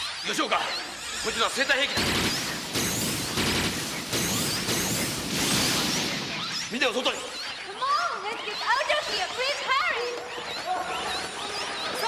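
A crowd of people murmurs and shuffles in a commotion.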